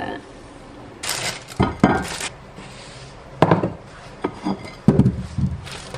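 A plate knocks against a wooden table.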